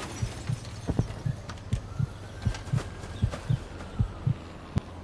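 Footsteps thud on soft ground.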